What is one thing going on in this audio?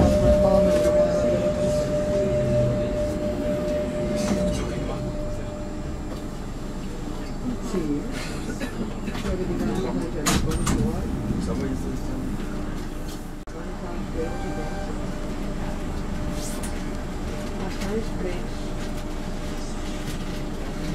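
A train rumbles steadily along the tracks.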